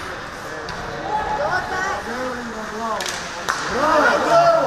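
Spectators on the bench shout and call out.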